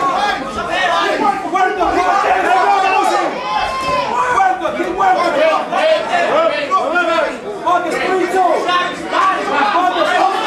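Spectators shout and call out around a boxing ring.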